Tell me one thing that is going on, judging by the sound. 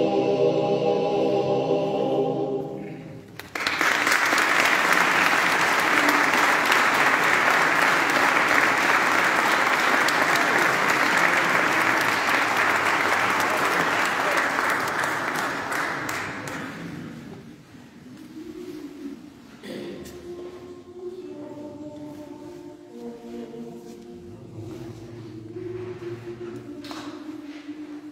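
A male choir sings in close harmony in an echoing hall.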